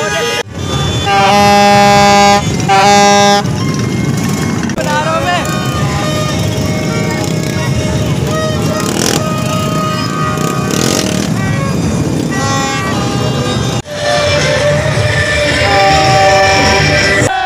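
A plastic horn blares loudly in short bursts.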